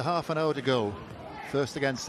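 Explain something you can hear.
A crowd murmurs in the open air.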